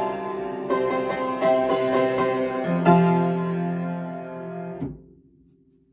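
A piano plays a lively tune and then stops.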